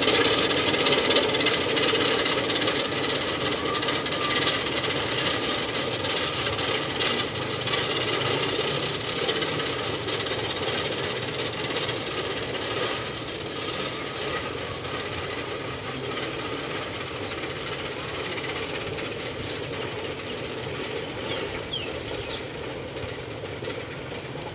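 A roller coaster train clatters and rattles steadily up a wooden track, slowly growing fainter.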